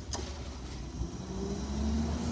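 A garbage truck's hydraulics whine and clank.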